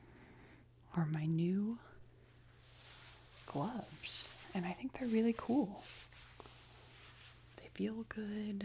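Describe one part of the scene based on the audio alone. A young woman speaks softly, close to a microphone.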